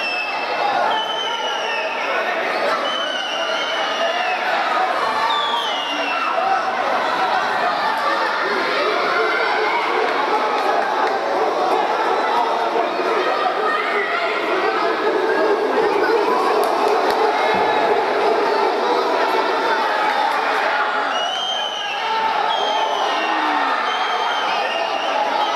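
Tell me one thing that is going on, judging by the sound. Whistles blow sharply from the crowd.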